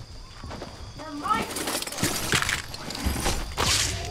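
A chest opens with a bright chiming sparkle.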